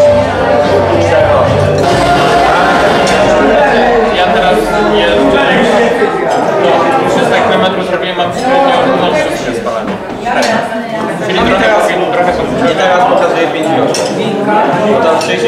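Several men and women chat and talk over one another close by.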